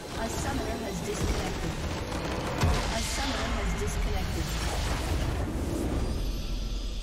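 A game structure shatters with a loud magical explosion.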